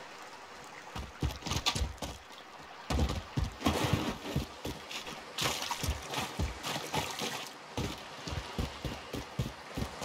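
Quick footsteps thud on dirt and stone.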